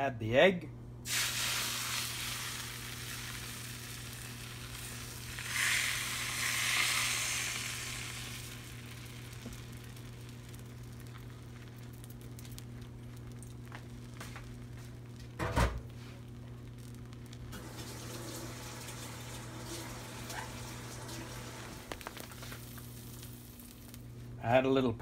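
Beaten egg sizzles softly in a hot pan.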